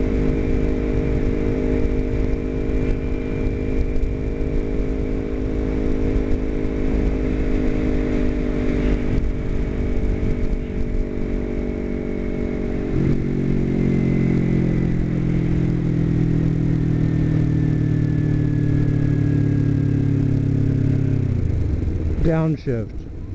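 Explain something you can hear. A motorcycle engine hums steadily, shifts gear once and drops in pitch.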